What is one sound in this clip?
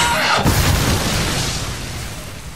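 Explosions boom across water.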